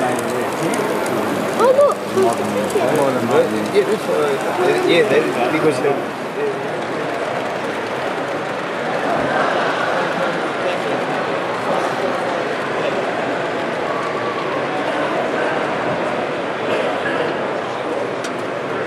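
A model train rumbles softly along its tracks.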